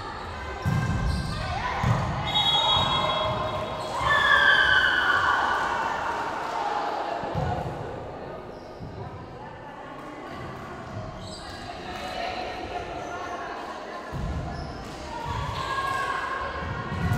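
A volleyball is struck with sharp slaps in a large echoing hall.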